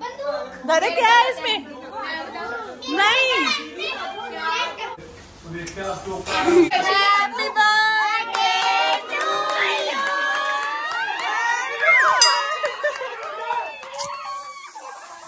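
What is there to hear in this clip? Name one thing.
A group of women and children sing together with excitement.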